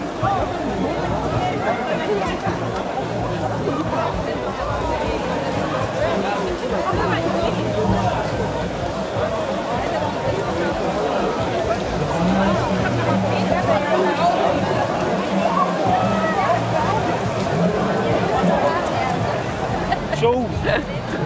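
A large crowd chatters and cheers loudly outdoors.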